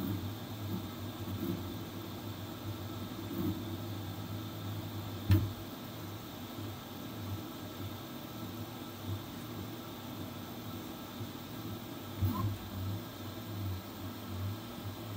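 A 3D printer's motors whir and hum steadily as the print head moves.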